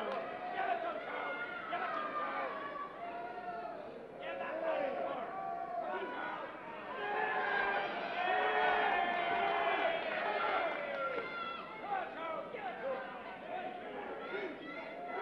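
A crowd of spectators shouts and jeers.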